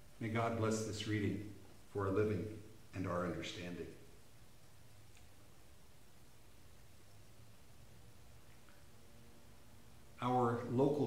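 An older man speaks calmly and close by, with pauses between phrases.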